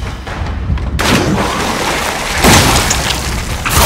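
A shotgun fires with loud, sharp blasts.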